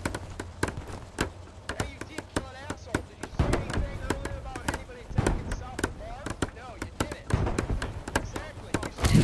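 A hammer knocks repeatedly against wood.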